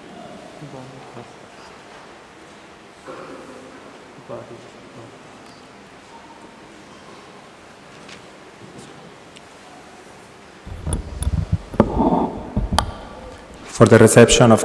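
A man speaks softly through a microphone in a large echoing hall.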